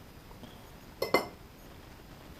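A knife clatters down onto a wooden board.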